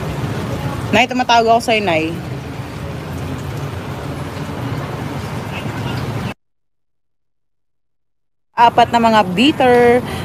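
A young woman speaks casually, close to a phone microphone.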